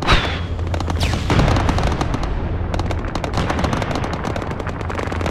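A huge explosion booms close by and rumbles away.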